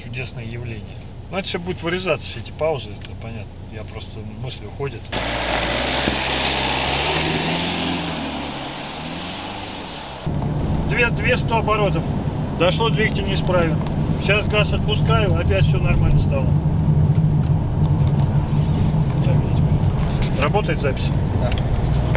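A man talks casually up close inside a car.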